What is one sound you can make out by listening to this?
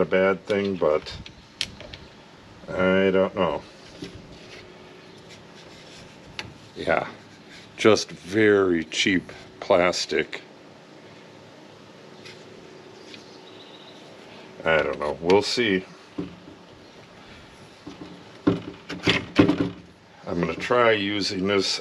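Metal parts click and clack as they are fitted together.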